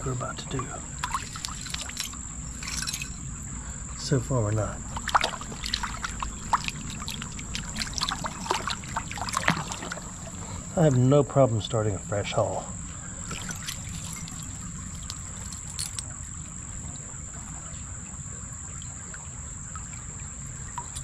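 Shallow water trickles and flows steadily over stones.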